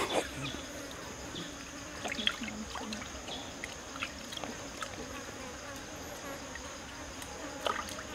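Water splashes softly as a man washes something in a stream.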